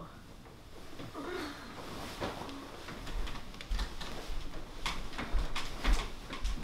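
Bedding rustles as people move on a bed.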